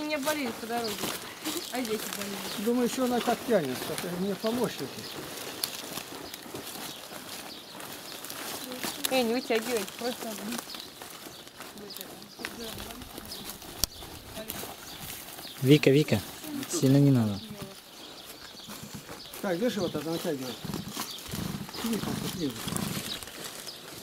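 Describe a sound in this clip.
An elderly man talks calmly outdoors.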